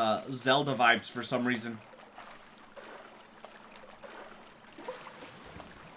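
Water splashes softly.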